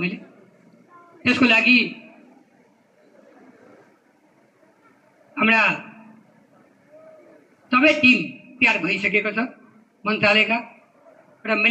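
A young man speaks through a microphone over loudspeakers, in short bursts with pauses.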